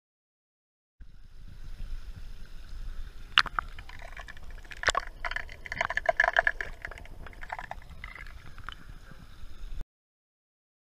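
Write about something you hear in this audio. A fishing lure splashes and gurgles through water.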